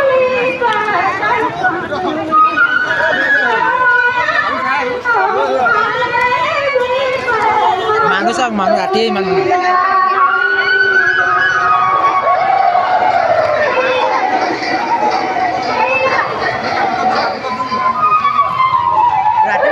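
A large crowd of men and women chatters and calls out all around, close by.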